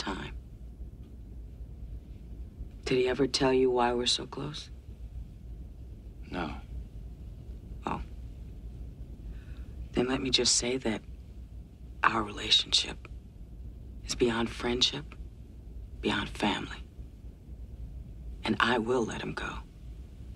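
A woman speaks calmly and warmly, close by.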